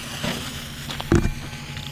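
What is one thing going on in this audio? A firework fuse fizzes and sputters close by.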